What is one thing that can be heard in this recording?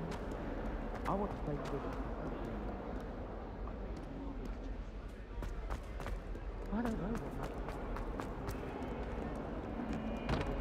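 Footsteps tap on stone stairs and floor in a large echoing hall.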